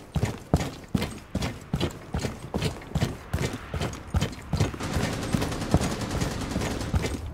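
Quick footsteps thud steadily on a hard floor.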